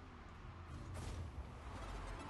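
An explosion bursts as a goal is scored in a video game.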